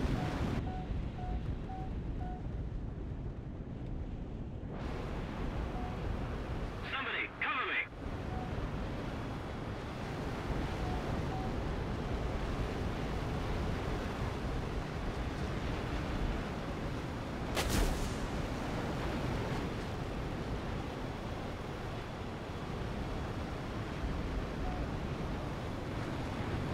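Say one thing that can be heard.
A jet aircraft's engine roars in flight.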